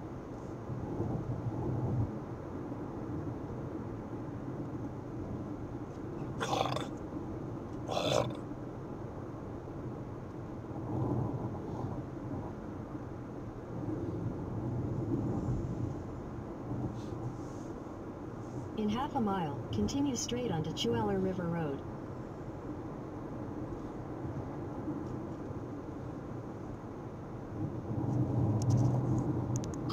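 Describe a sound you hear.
A car's engine hums steadily as it drives along a road.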